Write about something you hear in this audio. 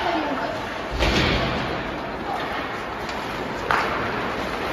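Hockey sticks smack a puck with sharp cracks.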